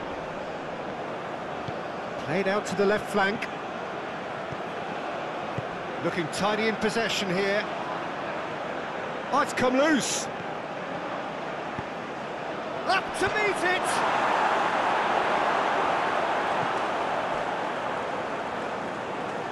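A large stadium crowd murmurs and cheers steadily, swelling louder for a while.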